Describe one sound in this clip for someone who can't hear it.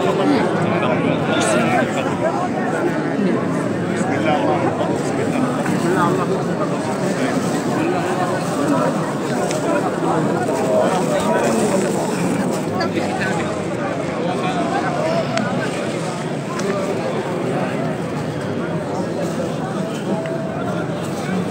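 A dense crowd of men and women prays and calls out loudly all around, close by.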